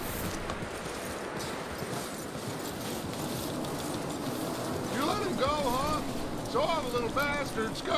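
Horse hooves crunch through snow.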